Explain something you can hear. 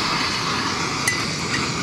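A metal pot clinks as it is set on a stove.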